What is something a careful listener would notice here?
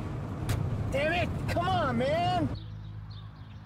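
A man curses loudly in frustration.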